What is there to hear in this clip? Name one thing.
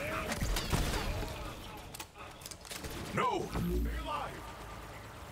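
Gunfire and energy blasts crack in quick bursts.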